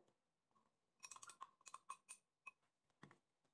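A metal spoon clinks against a glass bowl while stirring.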